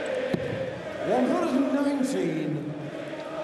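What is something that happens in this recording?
A man announces a score loudly through a microphone.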